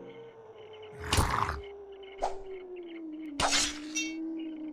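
A monster's bite lands with a loud crunching hit.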